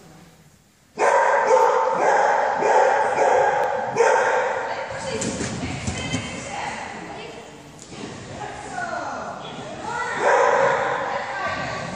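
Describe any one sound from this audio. A woman calls out loud, excited commands to a dog.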